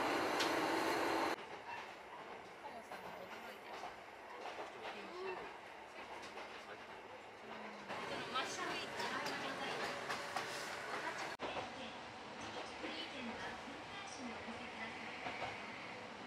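A train rattles and rumbles along the tracks.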